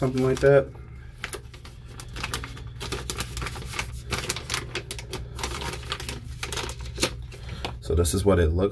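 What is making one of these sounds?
A plastic bag crinkles and rustles as it is opened.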